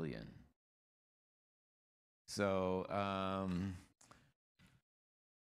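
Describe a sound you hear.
An elderly man speaks slowly into a microphone in a large, echoing hall.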